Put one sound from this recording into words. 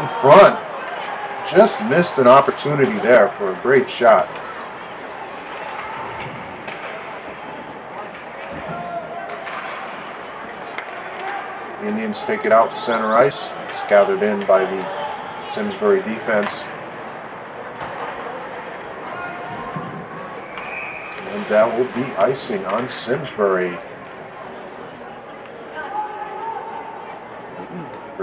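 A crowd murmurs in a large echoing rink.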